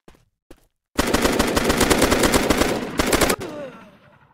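Rapid gunfire rattles loudly in quick bursts.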